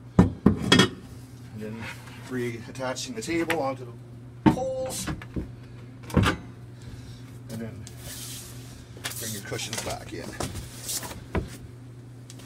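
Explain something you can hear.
A tabletop knocks and thuds as it is handled.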